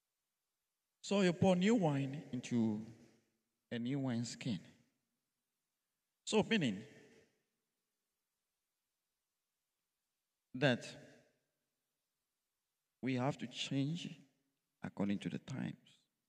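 A man speaks calmly into a microphone in an echoing hall, pausing between phrases.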